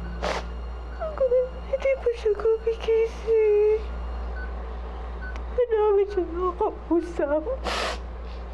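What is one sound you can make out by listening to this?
A young woman sobs and whimpers close by.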